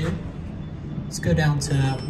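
A finger presses an elevator button with a soft click.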